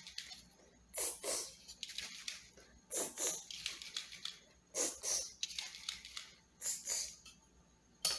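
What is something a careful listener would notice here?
A spray bottle hisses in short bursts close by.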